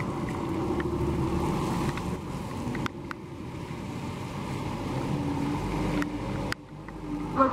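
A car drives past on a wet road, tyres hissing through water.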